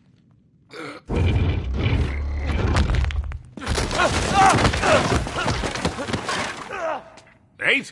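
Wooden floorboards crack and crash down as a man falls through them.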